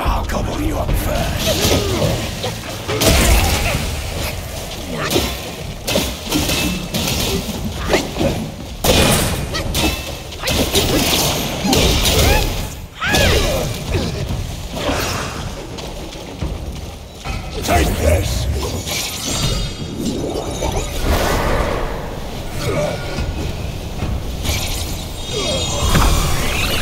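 A staff swings and strikes with sharp heavy blows.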